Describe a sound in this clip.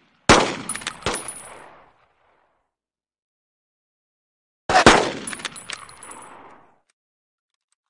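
A pistol fires single shots that echo and fade.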